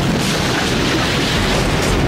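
A locomotive roars as it ploughs through snow.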